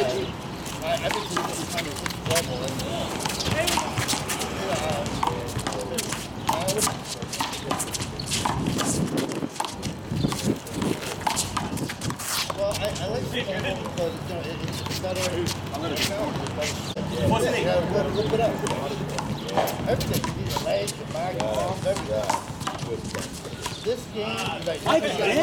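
A small rubber ball smacks against a wall and bounces on pavement again and again.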